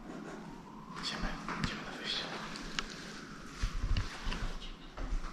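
Footsteps climb hard stairs with a slight echo.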